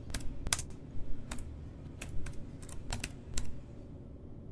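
Keys clack on a keyboard in quick, uneven bursts.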